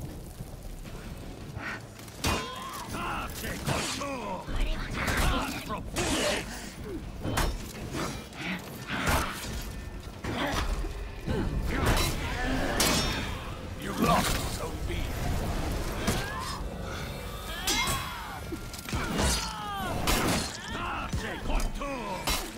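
Swords clash and clang sharply again and again.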